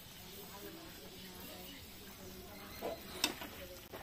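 A metal spatula scrapes a pan.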